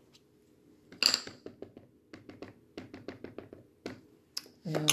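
A plastic stamp block taps and clicks against a hard surface.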